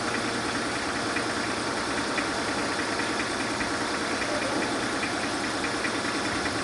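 A forklift engine rumbles steadily close by.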